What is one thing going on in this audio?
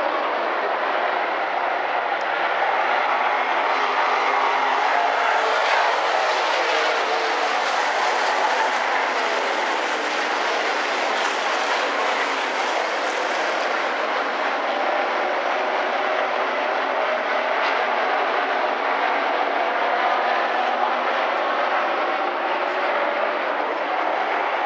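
Race car engines roar loudly.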